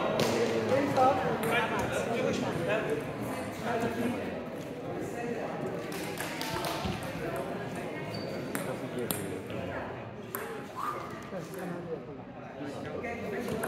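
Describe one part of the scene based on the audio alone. A table tennis ball clicks back and forth off paddles and a table in an echoing hall.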